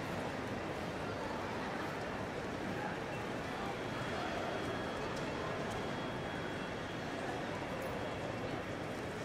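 A distant crowd murmurs in a large echoing hall.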